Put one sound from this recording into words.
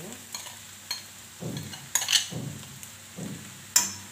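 Grated coconut pours softly into a metal pan.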